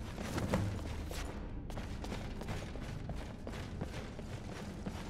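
Footsteps thud on stone in an echoing space.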